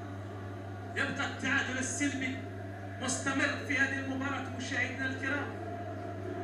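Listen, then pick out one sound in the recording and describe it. A man shouts on the pitch.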